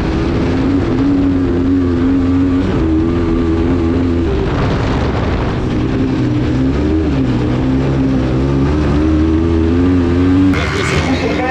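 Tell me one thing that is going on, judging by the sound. A buggy engine roars close by, revving up and down.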